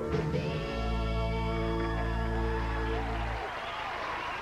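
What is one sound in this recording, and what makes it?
A young woman sings into a microphone over loud pop music.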